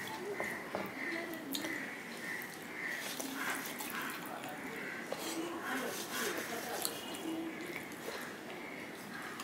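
Fingers scrape and squelch food on a metal plate.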